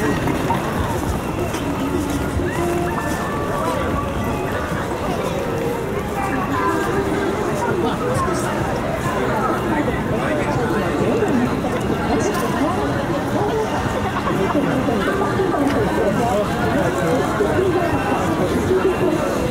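A large crowd chatters and murmurs all around outdoors.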